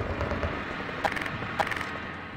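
A weapon clicks as it is switched.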